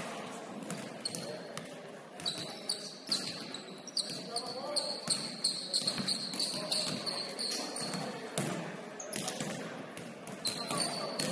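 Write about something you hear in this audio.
Sneakers squeak sharply on a hardwood floor.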